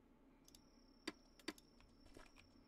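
Menu buttons click softly a few times.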